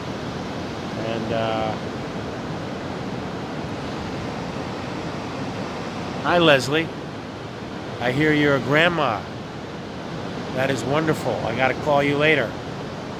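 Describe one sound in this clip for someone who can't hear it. A man speaks close by in a strained, emotional voice.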